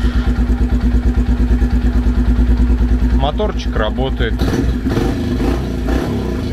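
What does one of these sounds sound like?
A motorcycle engine idles close by with a steady, rapid thumping.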